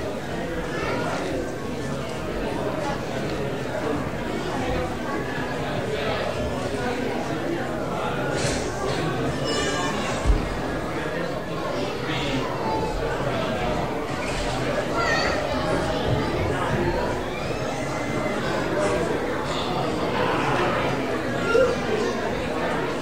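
A crowd of men and women chatter and talk all around in a large echoing room.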